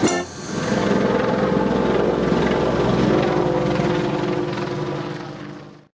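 A street organ plays a lively tune with pipes and fades out at the end.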